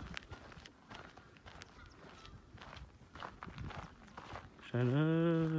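Footsteps crunch softly on dry grass.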